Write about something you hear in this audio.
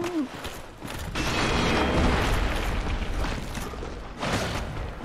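A large skeletal beast lunges with a rattle of bones.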